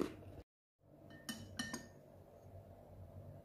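A ceramic cup clinks against a saucer.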